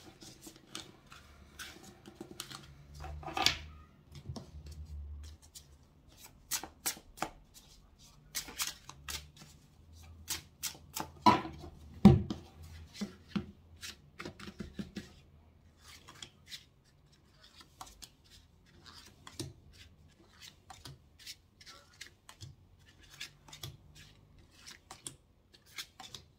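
Playing cards tap and slide on a hard table.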